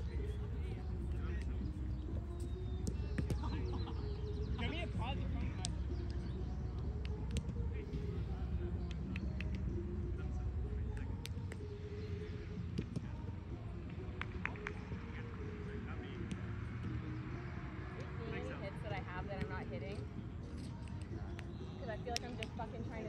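Young women talk casually nearby, outdoors.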